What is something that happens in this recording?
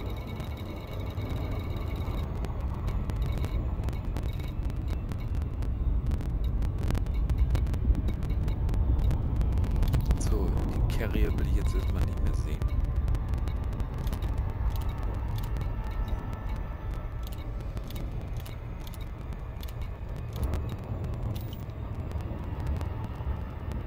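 A deep spaceship engine hum drones steadily.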